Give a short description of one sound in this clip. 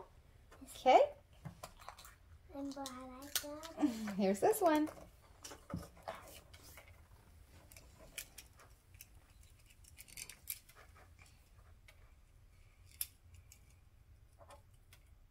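Small plastic toy pieces click and rattle in hands.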